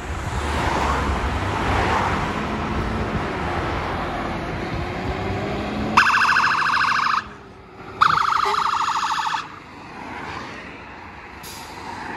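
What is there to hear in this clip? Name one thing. A fire engine's motor rumbles as the truck pulls out.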